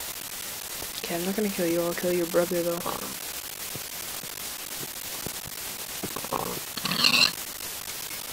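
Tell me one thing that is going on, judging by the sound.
A pig grunts and squeals.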